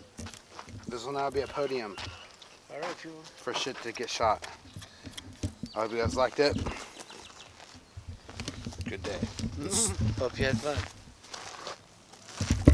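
A man talks calmly outdoors, close by.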